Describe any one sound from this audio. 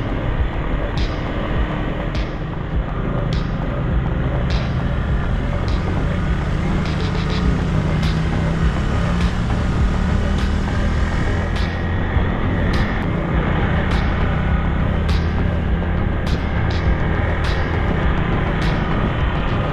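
Tyres crunch over a rough gravel track.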